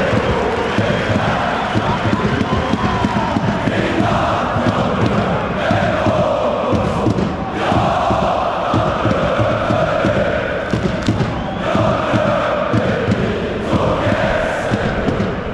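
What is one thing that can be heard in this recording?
A large crowd of fans sings and chants loudly in unison, echoing through a big stadium.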